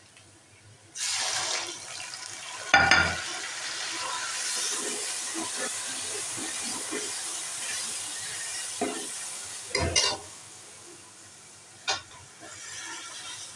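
Onions sizzle loudly in hot oil.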